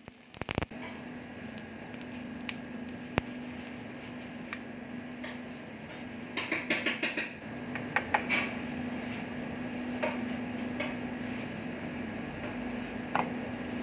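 Metal tongs clink and scrape against a pan.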